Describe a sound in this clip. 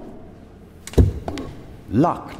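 A man thumps his hands against a glass pane.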